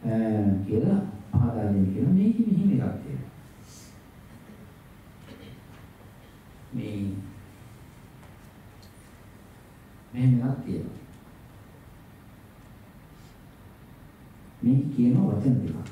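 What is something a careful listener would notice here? An elderly man speaks calmly and slowly into a microphone, with pauses.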